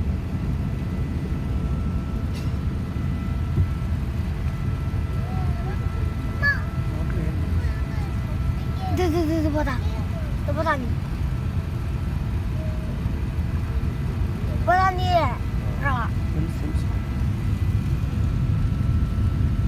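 An aircraft cabin hums with a steady low engine roar.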